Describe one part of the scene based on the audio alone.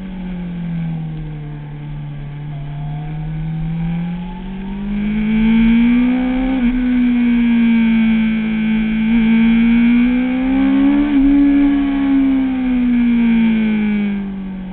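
A motorcycle engine roars up close, its pitch rising and falling as it accelerates and shifts gears.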